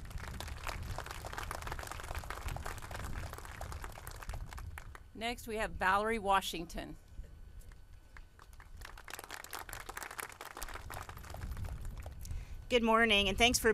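An audience applauds outdoors.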